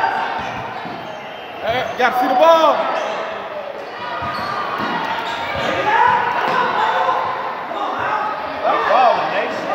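Young girls shout and call out to each other.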